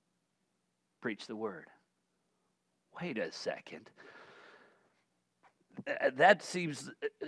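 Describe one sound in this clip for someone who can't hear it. A man speaks calmly and earnestly through a microphone.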